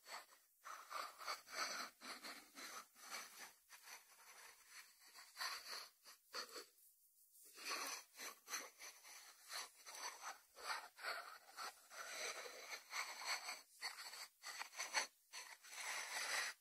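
A ceramic dish slides across a wooden board.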